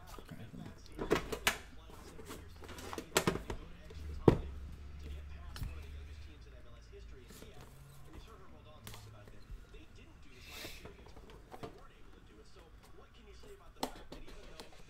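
Cardboard boxes rustle and knock as hands handle them.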